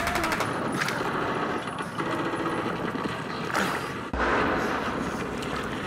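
Muddy water splashes as someone crawls through it.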